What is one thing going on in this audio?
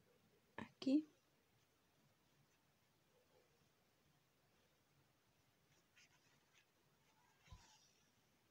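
Hands rustle and handle a soft knitted toy close by.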